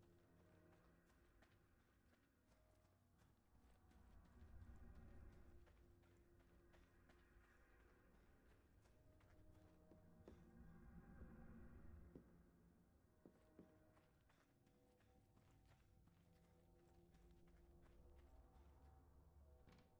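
Footsteps crunch quickly on gravel and wooden boards.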